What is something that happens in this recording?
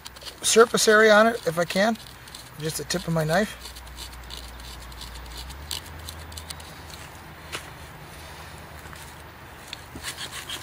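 A knife blade scrapes dry bark in short strokes.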